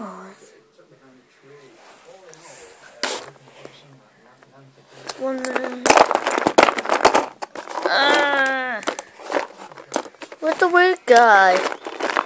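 Plastic toys clatter as a hand rummages through them.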